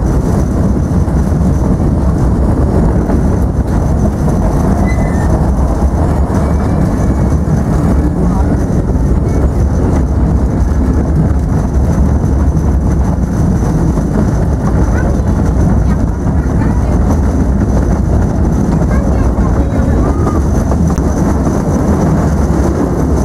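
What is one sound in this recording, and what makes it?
A small steam train rumbles and clatters steadily along the track.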